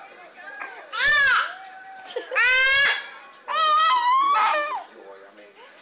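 A baby squeals loudly and shrilly close by.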